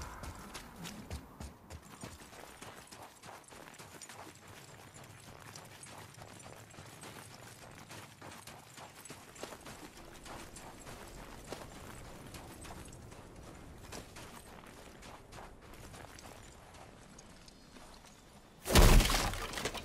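Footsteps crunch on snow and stones.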